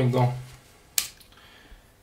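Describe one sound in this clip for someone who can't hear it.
Buttons click softly under a finger.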